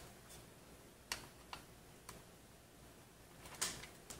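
A screwdriver taps against metal.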